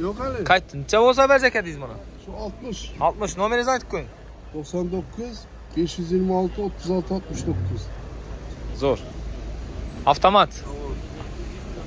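An elderly man talks with animation close by.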